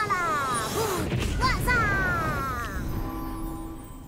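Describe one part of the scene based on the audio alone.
A magic spell bursts with a swirling whoosh.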